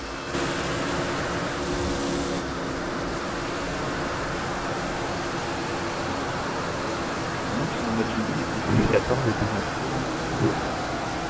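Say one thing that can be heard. A stock car's V8 engine roars at full throttle.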